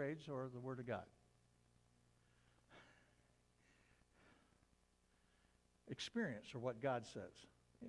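An elderly man reads aloud calmly, heard through a microphone in a large room.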